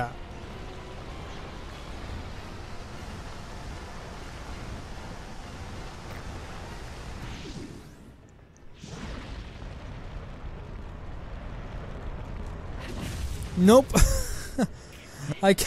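A blast of flame bursts loudly.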